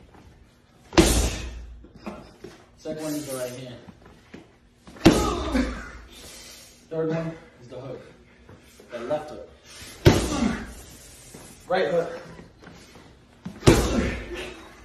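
Boxing gloves thud hard against a padded body protector.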